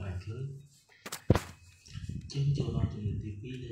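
A block drops into place with a short thud.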